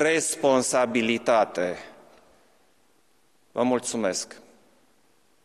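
A middle-aged man speaks formally and calmly into a microphone in a room with a slight echo.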